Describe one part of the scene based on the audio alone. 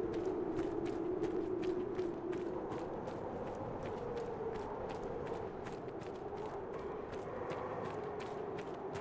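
Footsteps crunch quickly on snow as someone runs.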